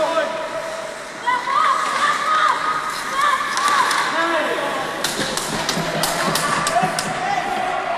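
Hockey sticks click and slap against a puck.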